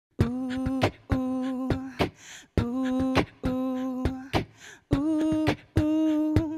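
A young woman hums short steady notes into a close microphone.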